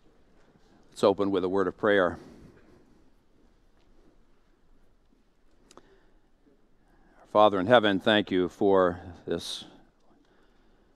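A middle-aged man speaks slowly and deliberately through a microphone in a large echoing hall.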